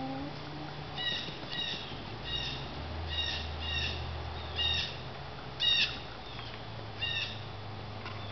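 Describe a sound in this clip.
Hens cluck and squawk nearby.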